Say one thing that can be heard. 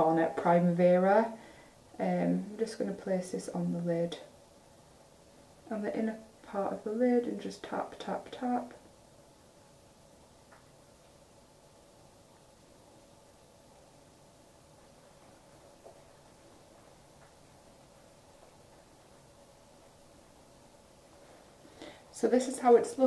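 A young woman talks calmly and closely into a microphone, with pauses.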